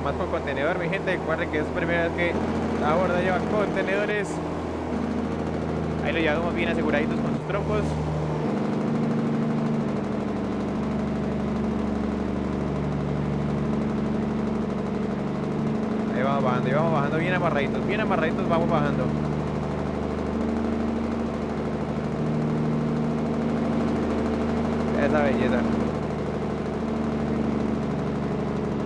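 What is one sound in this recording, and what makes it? A truck engine hums steadily at low revs.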